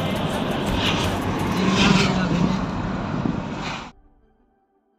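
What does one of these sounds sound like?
Wind rushes past an open bus window.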